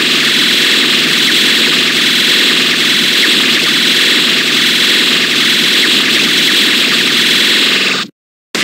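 Rapid electronic hit sounds rattle on without pause.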